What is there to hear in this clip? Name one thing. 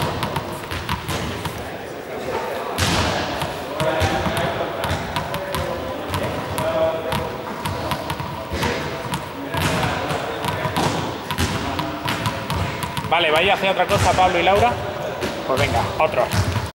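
Small balls bounce on a hard floor in a large echoing hall.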